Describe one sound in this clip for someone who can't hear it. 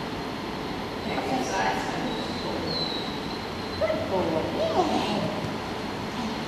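A woman talks encouragingly to a dog.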